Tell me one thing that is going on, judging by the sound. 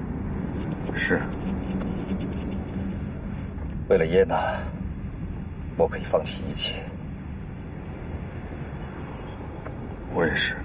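A car hums low and steady from inside.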